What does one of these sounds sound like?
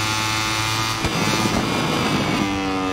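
Tyres rumble over a ridged kerb.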